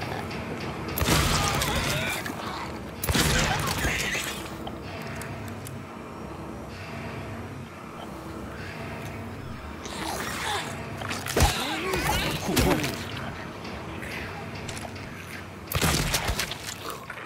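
A pistol fires loud shots in an echoing space.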